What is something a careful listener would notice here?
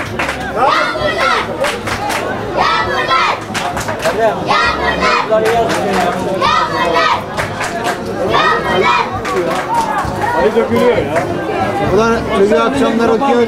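A crowd of spectators chants and sings loudly nearby.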